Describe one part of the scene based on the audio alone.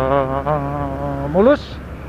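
A motor scooter drives past nearby.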